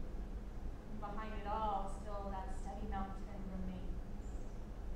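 A woman speaks calmly and briefly.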